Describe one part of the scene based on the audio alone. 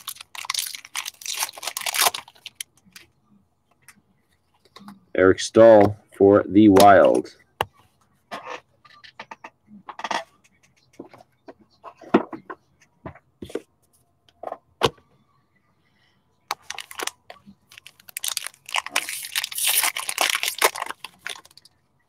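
A plastic wrapper crinkles and tears as a pack is opened by hand.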